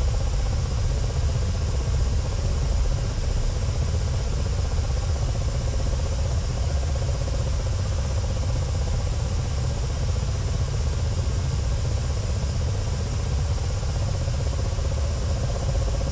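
A helicopter's engine whines steadily.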